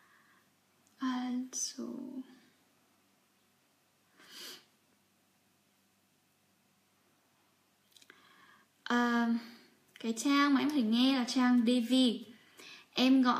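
A young woman speaks calmly and close by, with pauses.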